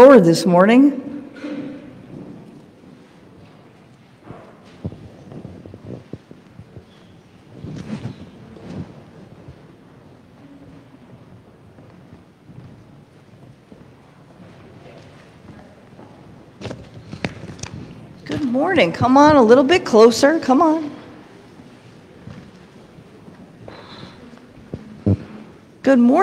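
A woman speaks through a microphone in a large echoing room.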